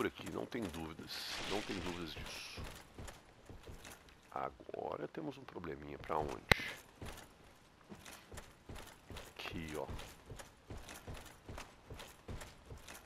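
Heavy armoured footsteps thud and clank steadily.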